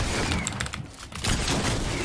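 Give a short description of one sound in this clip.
A gun fires in a game.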